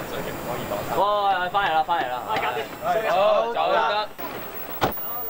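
Young men laugh and talk loudly outdoors.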